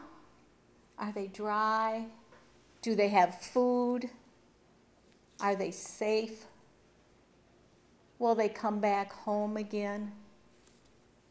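An older woman speaks slowly and with emotion, close by.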